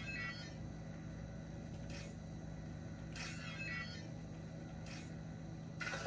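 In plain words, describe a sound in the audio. Electronic blips chirp briefly now and then.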